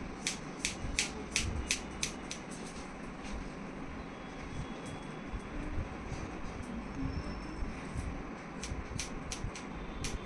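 Scissors snip crisply through hair in quick bursts.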